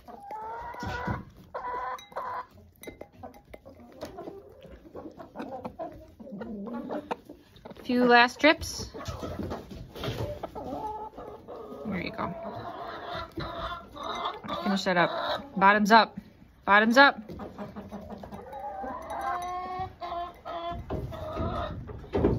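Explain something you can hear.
Hens cluck and squawk close by.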